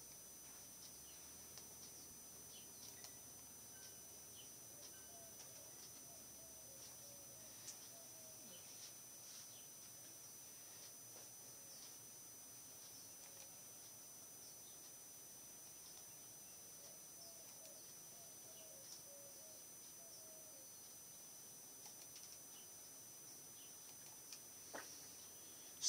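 A computer mouse clicks now and then, softly and close by.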